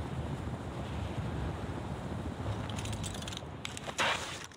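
Wind rushes loudly past a hang glider in flight.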